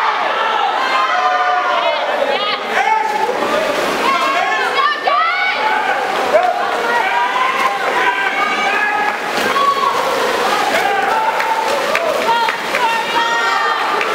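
A crowd of spectators cheers and yells loudly in an echoing hall.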